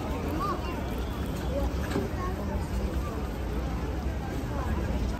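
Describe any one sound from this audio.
A large crowd of men and women murmurs and chatters outdoors.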